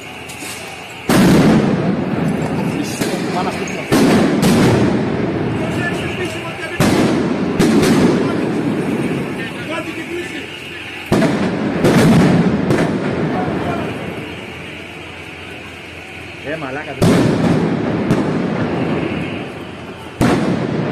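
Burning flares hiss and crackle steadily.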